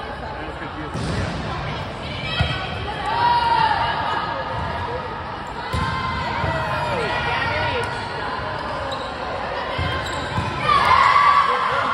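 A volleyball is struck with dull thumps.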